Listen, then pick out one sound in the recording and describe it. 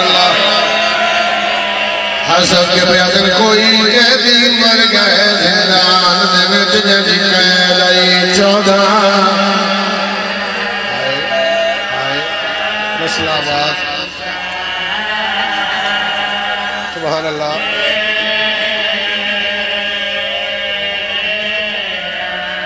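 A man recites loudly and with emotion into a microphone, in an echoing hall.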